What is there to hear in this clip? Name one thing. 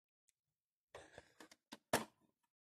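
Small plastic parts click and tap.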